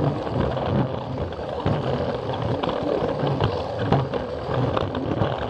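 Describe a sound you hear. A small toy train motor whirs steadily close by.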